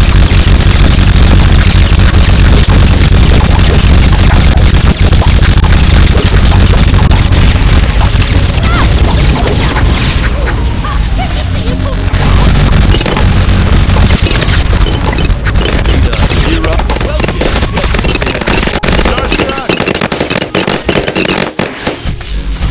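Game explosions and laser blasts crackle and boom without a break.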